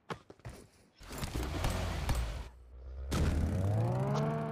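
A car engine starts and revs up, rising in pitch.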